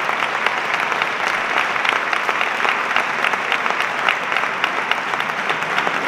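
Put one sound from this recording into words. A woman claps her hands close by.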